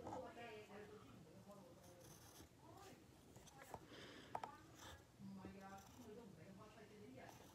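A pencil scratches on paper.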